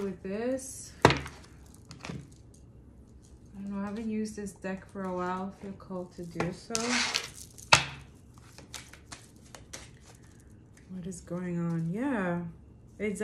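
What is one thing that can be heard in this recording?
Cards shuffle and tap on a table.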